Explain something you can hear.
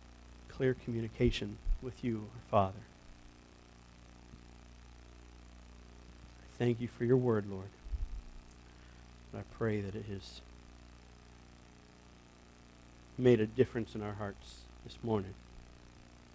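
A man speaks slowly and calmly into a microphone, in short bursts with long pauses.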